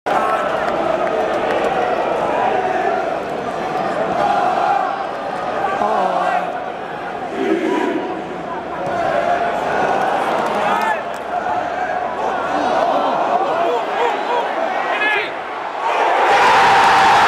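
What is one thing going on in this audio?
A large stadium crowd chants and sings, echoing under the roof.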